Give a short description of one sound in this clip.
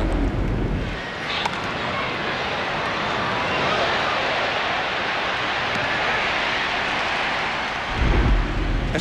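A stadium crowd murmurs in a large open space.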